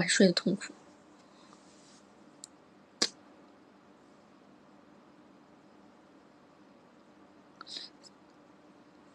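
A young woman speaks briefly and softly close to the microphone.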